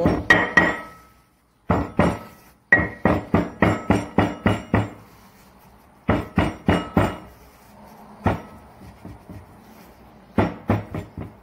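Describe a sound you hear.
A stone pestle pounds and taps repeatedly on a stone slab.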